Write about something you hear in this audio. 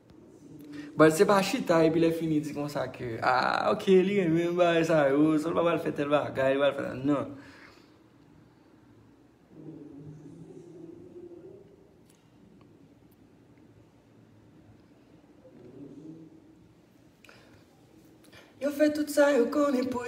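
A young man sings close into a microphone, with a smooth melodic voice.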